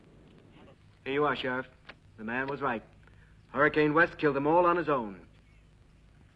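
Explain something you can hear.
An older man speaks gruffly nearby.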